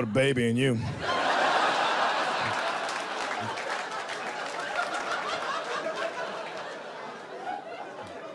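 An audience laughs and applauds in a room.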